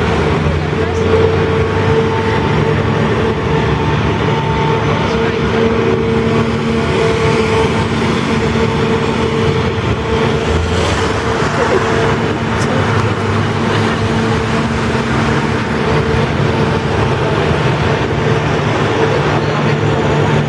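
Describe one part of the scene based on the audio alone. A large mechanical engine hums and drones steadily close by.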